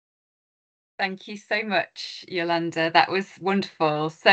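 A second woman talks with animation over an online call.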